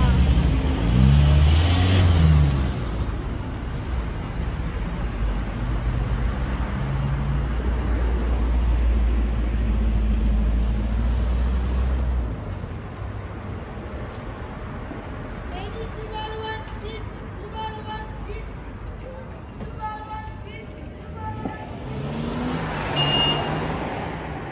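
Road traffic rumbles past on a busy street outdoors.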